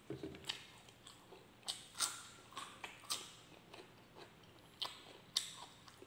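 A cucumber crunches as a man bites into it.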